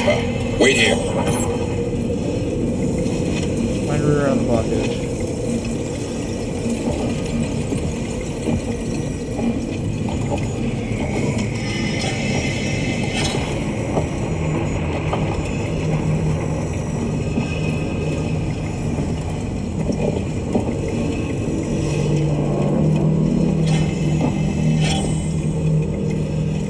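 An electric machine hums steadily.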